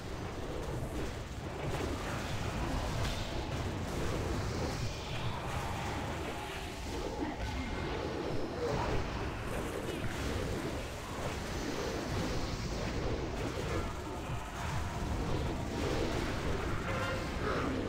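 Magic spells crackle and burst in a busy game battle.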